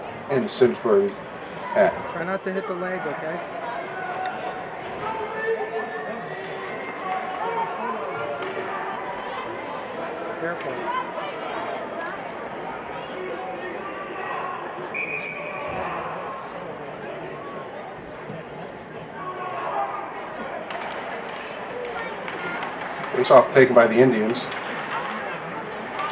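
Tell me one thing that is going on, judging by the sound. A crowd of spectators chatters in an echoing rink.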